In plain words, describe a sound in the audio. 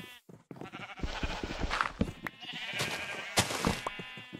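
Dirt blocks crunch and crumble as they are dug away.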